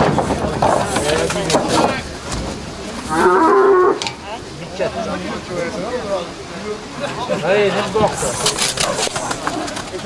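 A cow's horns and body thud against a wooden barrier.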